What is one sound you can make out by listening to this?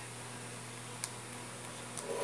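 A plug clicks into a wall socket.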